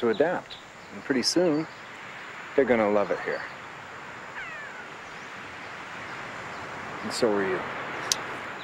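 A man speaks calmly close by, outdoors.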